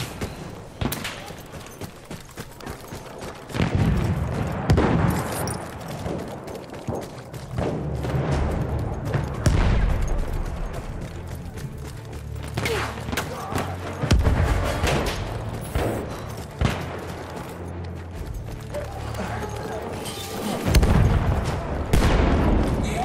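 Footsteps crunch on gravel at a run.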